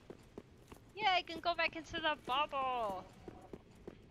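A young woman speaks animatedly into a close microphone.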